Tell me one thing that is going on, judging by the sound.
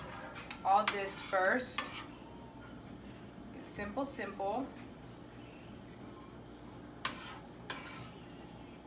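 A spatula scrapes and taps against a frying pan.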